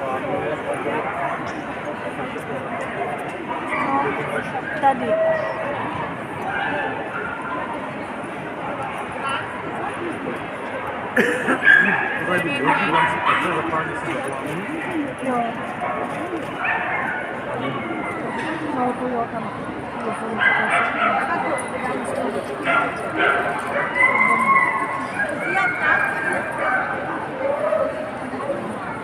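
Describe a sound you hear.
A crowd of men and women chatters throughout a large echoing hall.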